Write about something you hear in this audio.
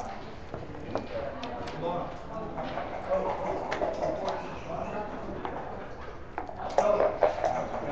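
Game pieces click against each other as they are slid across a wooden board.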